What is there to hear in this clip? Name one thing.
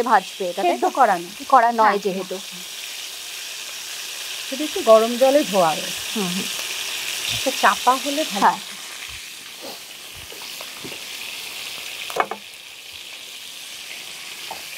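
Food sizzles in hot oil in a pan.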